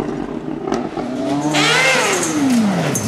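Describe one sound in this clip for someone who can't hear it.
A second rally car engine revs up and then drops in pitch as it passes close by.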